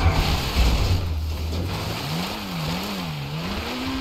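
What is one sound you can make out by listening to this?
A car lands with a heavy thud on rough ground.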